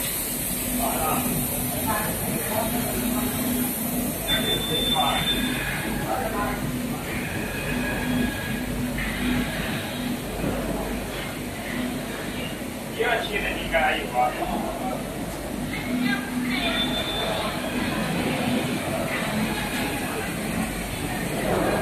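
Machines hum steadily in a large room.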